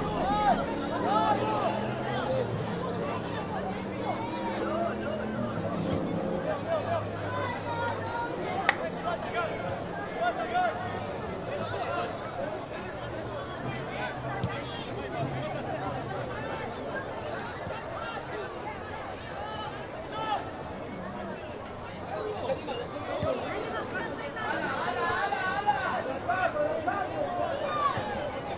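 A football is kicked on a grass pitch.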